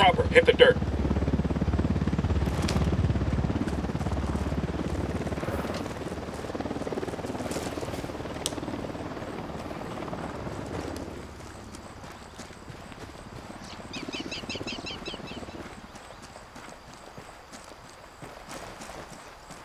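Footsteps shuffle softly over grass and dirt.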